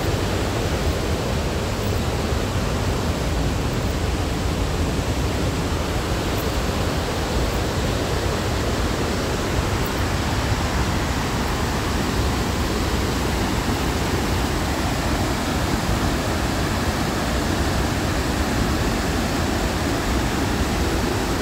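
A river rushes steadily below, heard from a distance.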